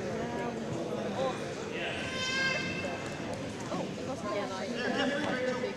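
Young girls chatter and call out in a large echoing gym.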